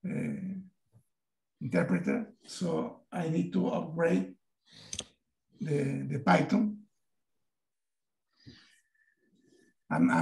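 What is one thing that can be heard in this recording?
An elderly man talks with animation over an online call.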